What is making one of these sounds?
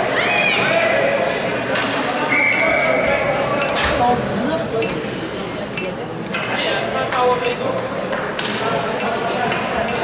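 A crowd of spectators cheers and shouts in a large echoing arena.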